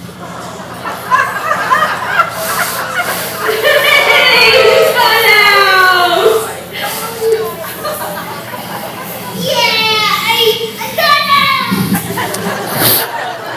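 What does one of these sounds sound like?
A young child talks and squeals excitedly close by.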